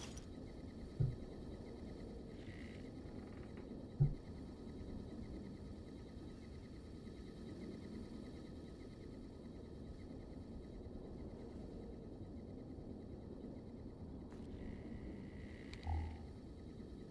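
Heavy footsteps thud on wooden floorboards.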